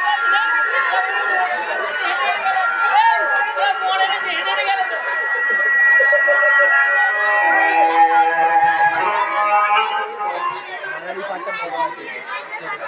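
A crowd of people chatters loudly all around.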